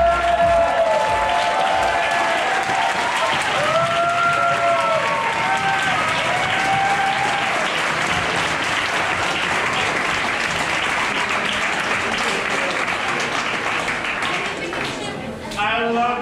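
A crowd applauds.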